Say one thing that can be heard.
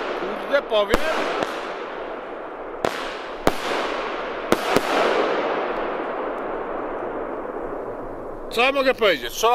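Fireworks burst overhead with loud bangs that echo away.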